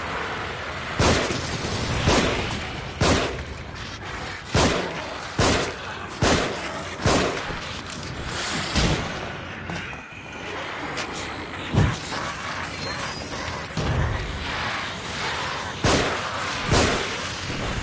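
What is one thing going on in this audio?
A revolver fires several loud, sharp shots.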